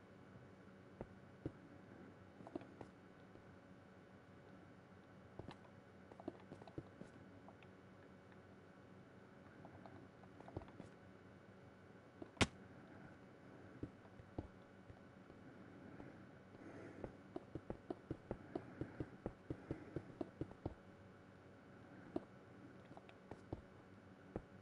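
Stone blocks are set down with soft, dull knocks.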